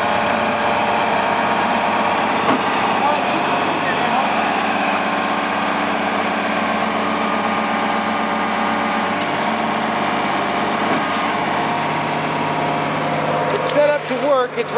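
A tow truck's hydraulic pump whines steadily.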